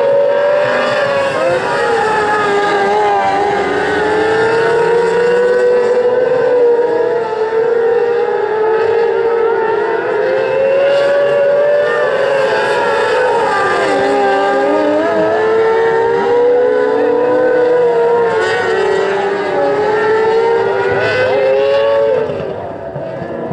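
Race car engines rise and fall in pitch as the cars pass close by.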